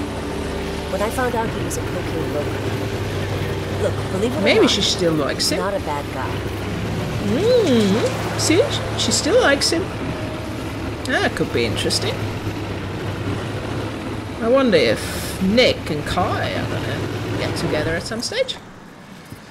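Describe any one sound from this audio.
A boat motor drones steadily over water.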